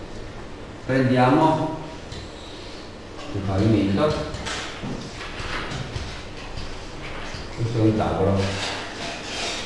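A man speaks calmly in a room, with pauses.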